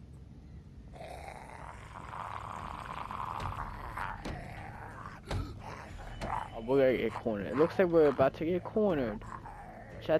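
A zombie growls and snarls loudly.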